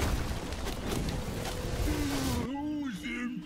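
Magic blasts crackle and roar in a fight.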